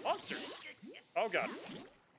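A fiery explosion bursts.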